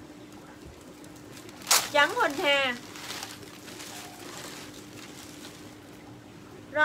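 Plastic packaging rustles as clothes are handled.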